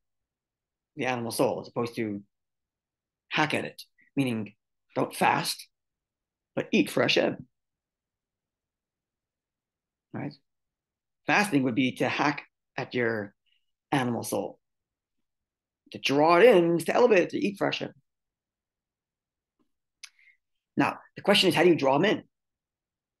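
A middle-aged man speaks calmly and with animation into a microphone, pausing between phrases.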